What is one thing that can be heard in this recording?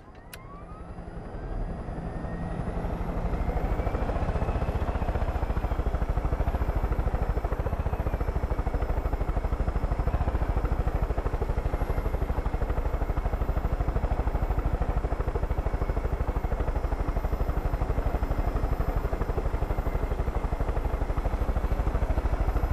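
A helicopter's engine whines, rising in pitch as it spins up.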